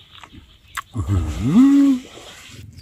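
A young man hums a pleased sound, close up.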